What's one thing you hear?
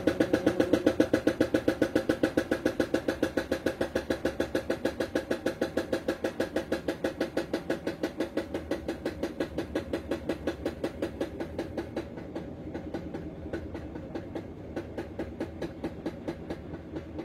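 A washing machine drum spins with a fast, rhythmic whooshing hum that slowly gets quieter.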